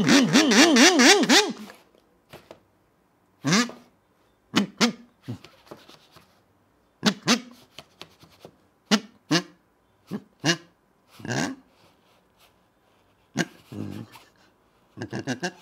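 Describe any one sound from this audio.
A squeaky rubber toy squeaks in short, sharp bursts.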